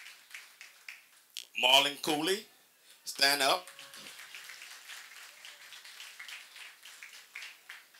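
A boy claps his hands.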